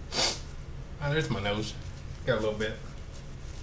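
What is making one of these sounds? A middle-aged man speaks calmly and close by, in short bursts.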